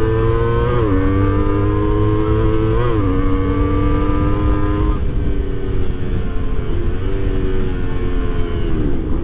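Wind rumbles past at speed.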